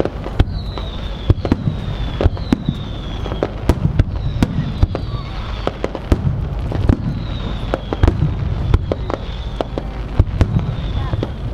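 Fireworks bang and crackle in rapid bursts.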